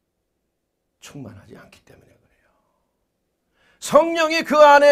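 A middle-aged man speaks into a microphone, quietly at first, then in a loud, drawn-out, emphatic voice.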